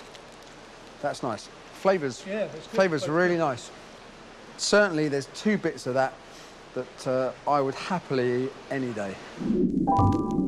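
A middle-aged man speaks calmly and closely to the listener.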